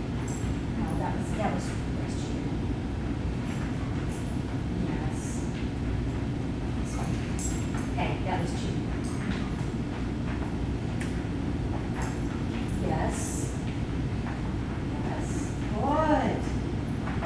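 A woman gives a dog short, upbeat commands in a large echoing room.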